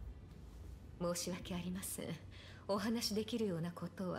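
A young woman speaks calmly and softly, close by.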